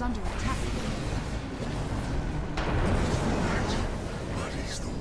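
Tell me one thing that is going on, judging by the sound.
A fiery beam blasts with a loud roar.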